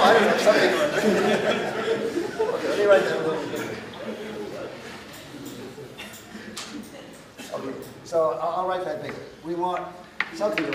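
An elderly man lectures in a calm, speaking voice in an echoing hall.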